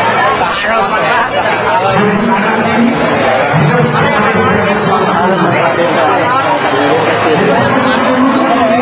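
A crowd of people chatters and shouts loudly close by.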